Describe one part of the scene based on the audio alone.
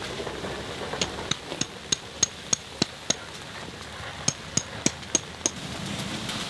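A hammer taps a metal tent peg into the ground in quick bursts.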